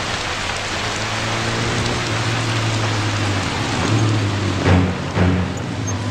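A motorbike engine rumbles as it approaches.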